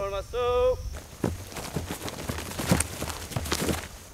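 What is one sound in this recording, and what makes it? Rifles fire in a volley.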